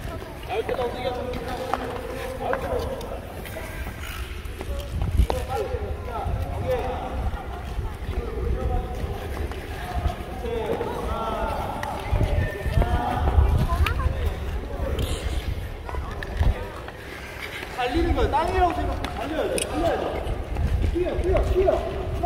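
Skate blades scrape and hiss across ice in a large echoing hall.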